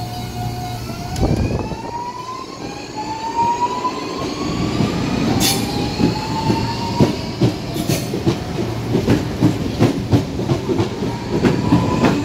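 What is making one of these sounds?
A departing electric train's motors whine, rising steadily in pitch.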